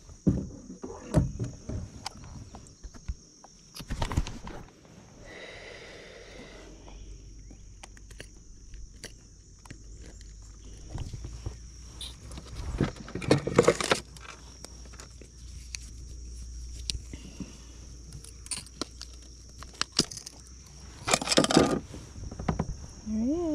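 Plastic gear clicks and rattles close by.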